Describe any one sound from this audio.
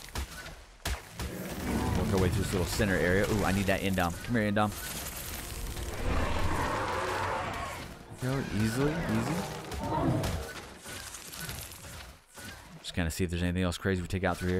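A giant spider creature scuttles along with clattering steps.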